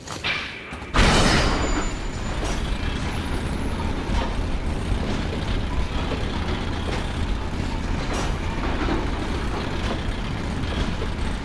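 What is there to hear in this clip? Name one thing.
A metal cart rumbles and rattles along rails.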